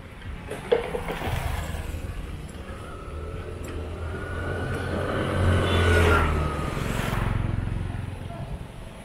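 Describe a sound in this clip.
A motorbike engine approaches and passes close by.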